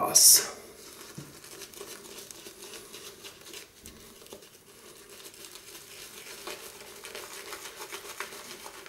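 A shaving brush swishes against a man's lathered cheek.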